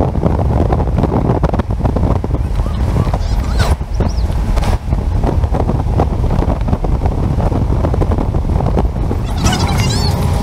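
Wind buffets loudly against a moving car.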